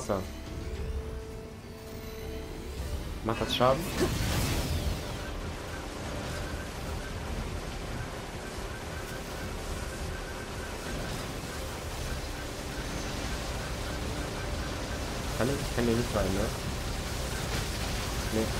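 Electric energy crackles and hums from a glowing machine.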